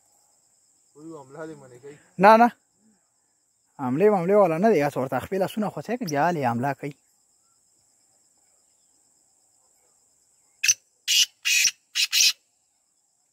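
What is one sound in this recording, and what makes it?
A partridge calls loudly in rapid cackling bursts, close by.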